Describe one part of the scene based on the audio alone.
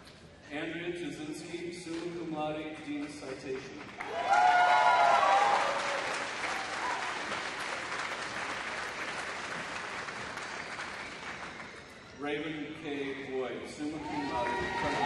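A man announces over a loudspeaker in a large echoing hall.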